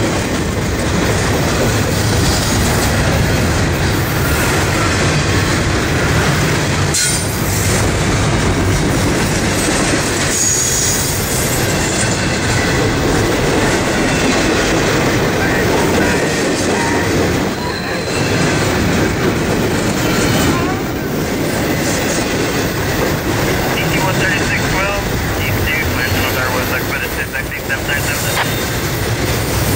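Steel wheels clack and squeal on the rails.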